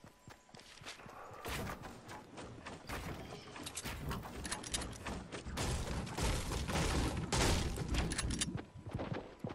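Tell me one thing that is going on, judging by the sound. Wooden building pieces clatter into place.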